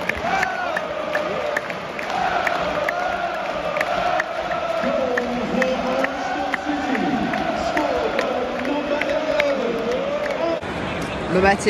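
A large stadium crowd chants and sings together, echoing loudly.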